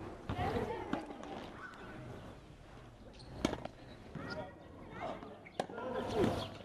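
Tennis rackets hit balls with sharp pops.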